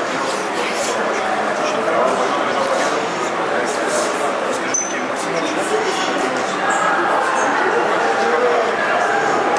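A man speaks into a handheld microphone, asking questions calmly.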